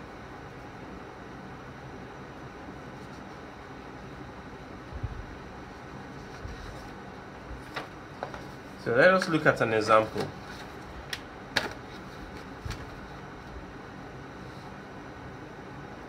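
A hand brushes and taps against a sheet of paper.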